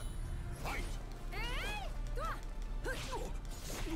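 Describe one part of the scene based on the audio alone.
Game fighters clash with sharp metallic hits.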